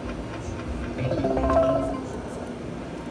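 A slot machine plays a short jingle.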